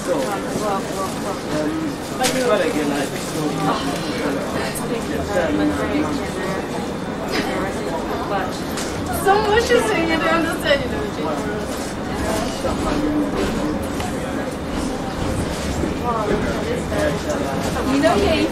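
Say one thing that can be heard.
A tram rumbles steadily along the track.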